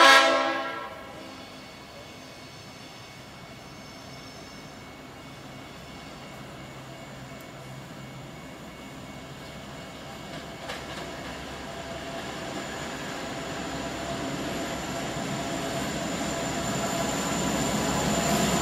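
A diesel locomotive rumbles closer and grows steadily louder.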